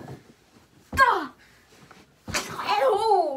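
A boy knocks on a wall.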